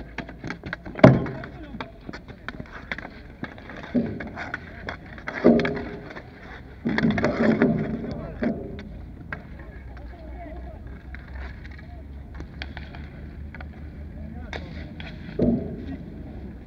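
A ball smacks against sticks and boards.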